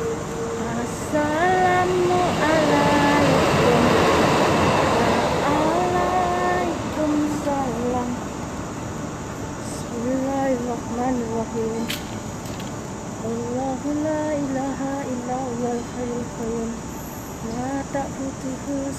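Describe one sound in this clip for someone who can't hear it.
A young woman talks close to a phone microphone.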